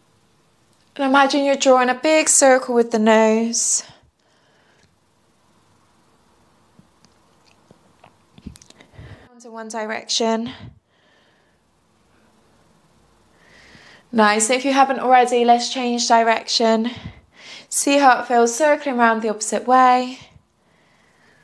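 A young woman speaks calmly and slowly, close to a microphone.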